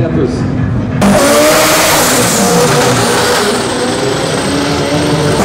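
Car tyres screech and squeal while spinning in place.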